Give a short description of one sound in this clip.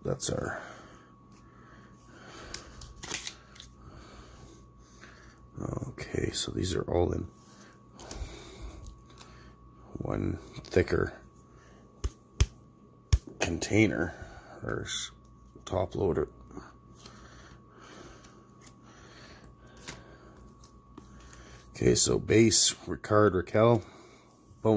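Plastic card holders click and rustle as they are handled.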